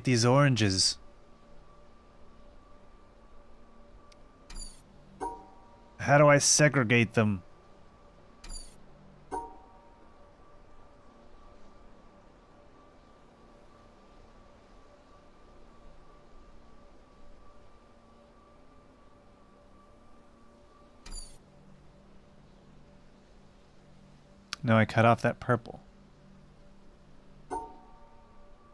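Short electronic chimes ring out several times.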